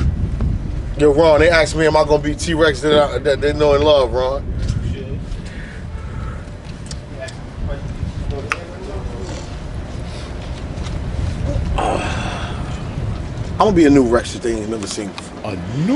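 A young man raps in a melodic, warbling voice close by.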